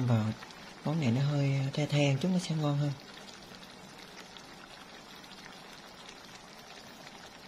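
Pork simmers in a sauce in a frying pan.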